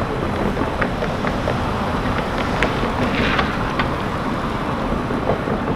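A motor scooter rides past close by.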